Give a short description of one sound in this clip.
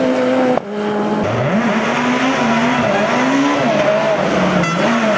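A rally car engine roars and revs hard up and down.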